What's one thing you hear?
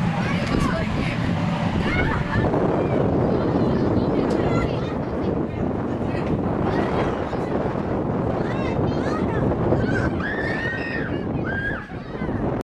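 Children shout and squeal nearby outdoors.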